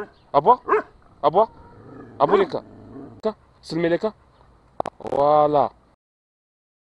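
A dog barks loudly nearby in short bursts.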